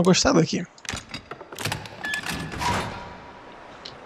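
A card reader on a door lock clicks and beeps.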